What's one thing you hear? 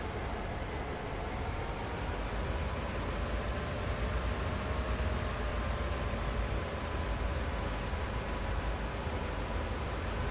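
Train wheels roll and clatter on the rails.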